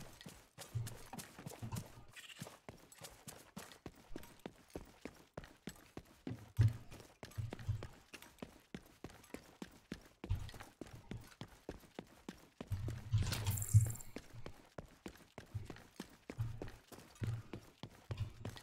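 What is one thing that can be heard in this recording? Quick footsteps thud on hard ground.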